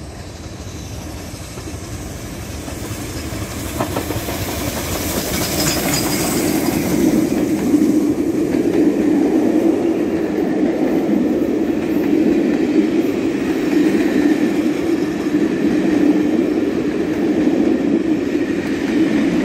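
A steam train approaches and rumbles past close by.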